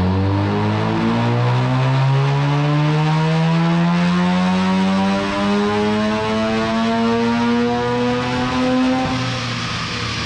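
A car engine revs hard, climbing steadily in pitch, loud and close.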